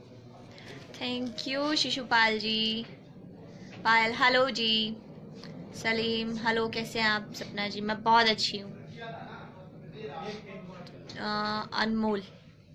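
A young woman speaks calmly and close to a phone microphone.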